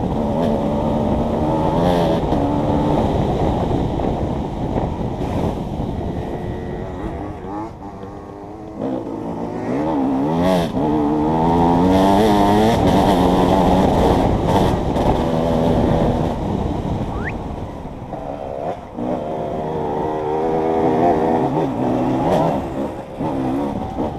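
Tyres crunch and rattle over a rough dirt track.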